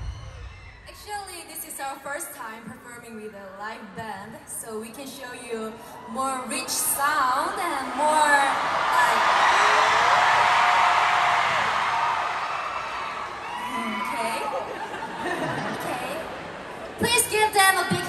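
A young woman speaks into a microphone over loudspeakers in a large echoing hall.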